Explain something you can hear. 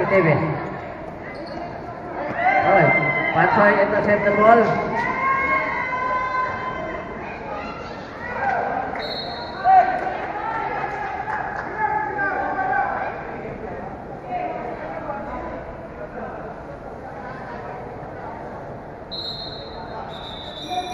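A crowd of young men and women shouts and cheers in a large echoing hall.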